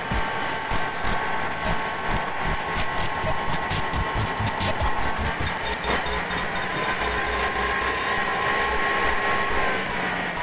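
Upbeat electronic music plays with a quick beat.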